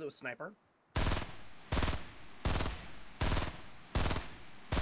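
A rifle fires repeated loud shots.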